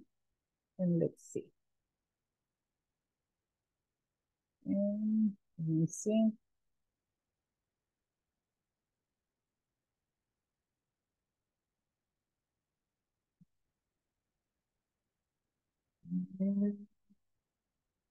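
A woman speaks in short bursts over an online call, with long pauses between.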